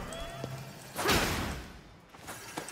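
A magical blast crackles and whooshes.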